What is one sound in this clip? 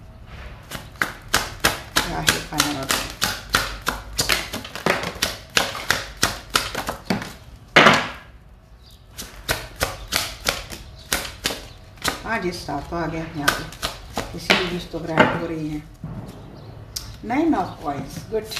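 Playing cards are shuffled quickly with crisp riffling clicks.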